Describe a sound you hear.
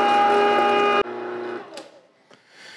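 An electric meat grinder hums steadily, then switches off and winds down.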